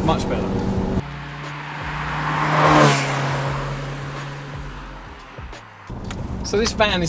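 A van drives past outdoors with a rising and falling rush.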